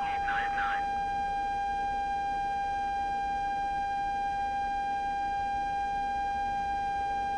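A jet engine whines and rumbles steadily at idle.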